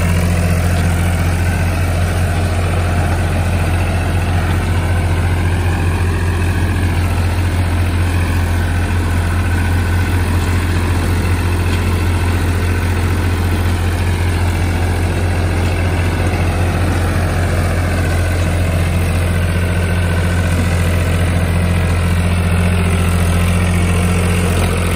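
A rotary tiller churns through soil.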